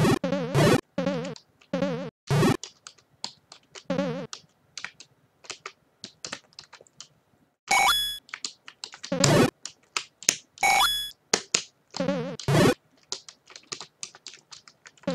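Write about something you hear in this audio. Retro video game sound effects beep and buzz in short bursts.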